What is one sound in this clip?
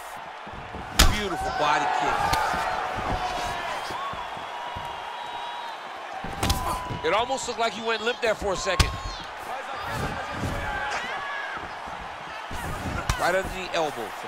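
Punches land with sharp thuds.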